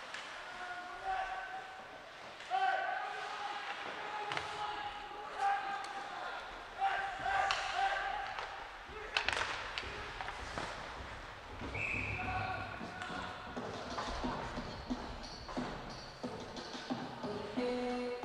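Players shout to each other in a large echoing rink.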